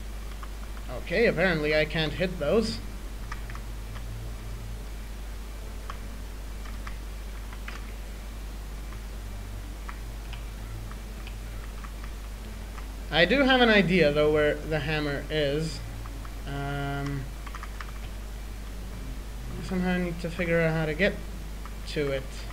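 A young man speaks casually into a close microphone, in short bursts.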